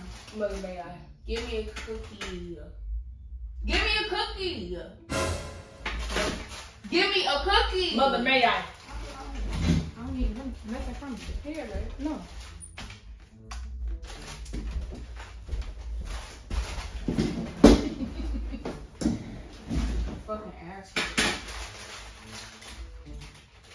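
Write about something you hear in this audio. A second young woman answers and laughs.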